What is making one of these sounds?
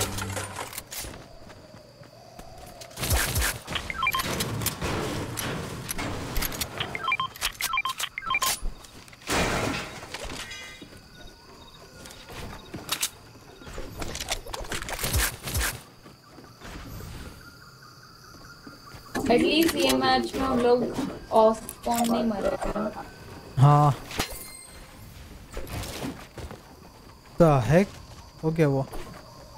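Footsteps patter quickly on hard floors and stairs.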